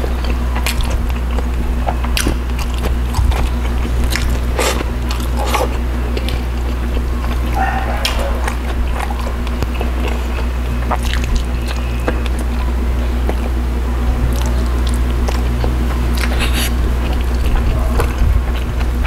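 Fish flesh crackles and tears under fingers.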